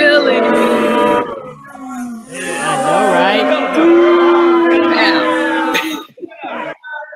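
Several women laugh loudly over an online call.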